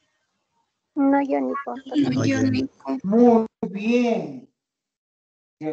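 An elderly man speaks calmly through an online call.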